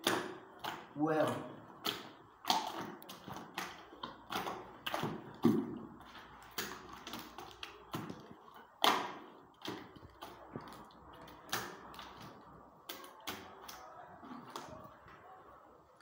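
A hand scoops and stirs thick plaster mix in a plastic bucket, with wet slaps and scrapes.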